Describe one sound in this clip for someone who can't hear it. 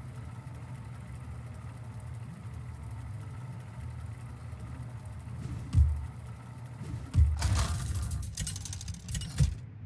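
A low mechanical rumble whirs steadily.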